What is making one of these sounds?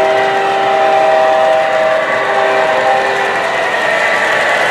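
A model diesel locomotive sounds its horn.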